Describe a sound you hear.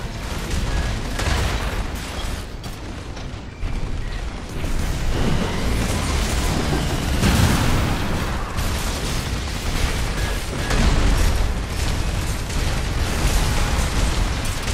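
Energy weapons crackle and zap.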